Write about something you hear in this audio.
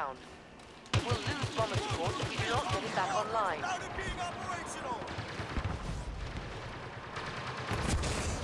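A rifle fires rapid laser shots.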